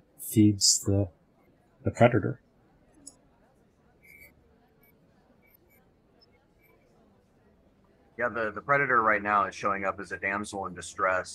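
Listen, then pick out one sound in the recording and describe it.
A man speaks with animation, close to a microphone over an online call.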